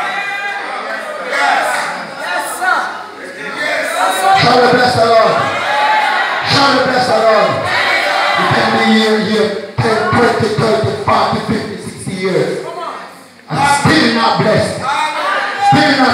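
A man preaches loudly through a microphone in an echoing hall.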